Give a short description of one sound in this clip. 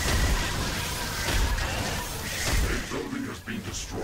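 Game explosions boom and crackle loudly.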